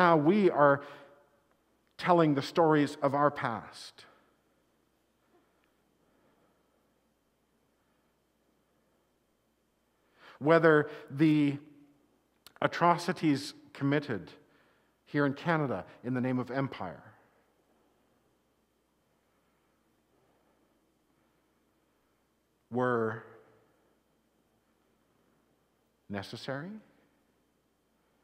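A middle-aged man speaks with animation, in short phrases with pauses.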